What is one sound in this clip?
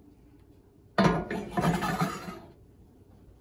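A glass dish clunks down onto a stove grate.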